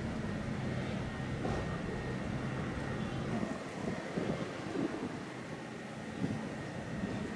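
Men talk faintly in the distance outdoors.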